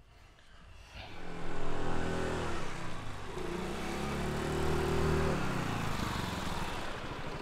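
A scooter engine approaches, growing louder, and passes close by.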